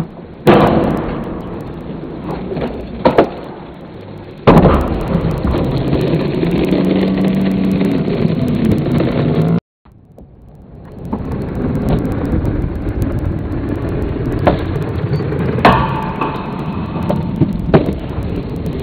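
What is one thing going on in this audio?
A skateboard deck clacks and grinds on a metal rail.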